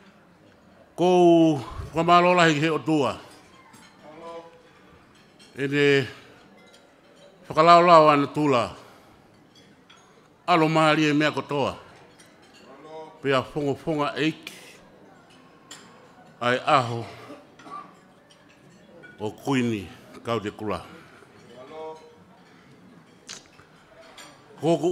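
A middle-aged man speaks slowly into a microphone over a loudspeaker, with pauses between phrases.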